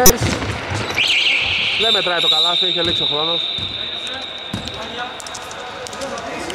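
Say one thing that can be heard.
A referee blows a long, shrill whistle.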